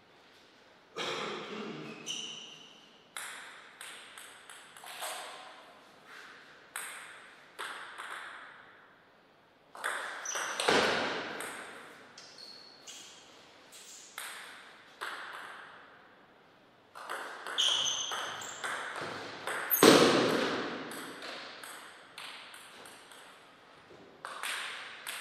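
A ping-pong ball clicks sharply on paddles and the table in an echoing hall.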